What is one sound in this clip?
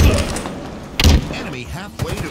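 A loud explosion bursts with a heavy boom.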